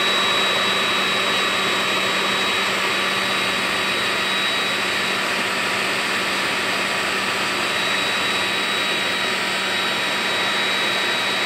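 A small electric fan blows with a steady whirring hum.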